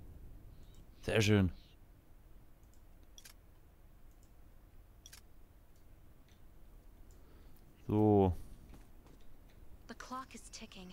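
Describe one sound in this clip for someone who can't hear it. A man speaks briefly and casually into a microphone.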